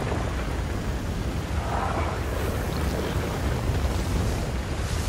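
Strong wind roars and blows sand about.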